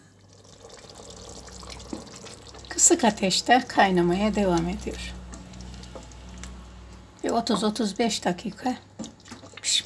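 A wooden spoon stirs and scrapes through a thick simmering sauce in a metal pot.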